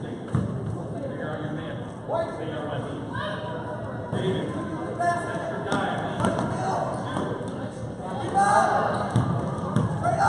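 A crowd of spectators chatters and calls out.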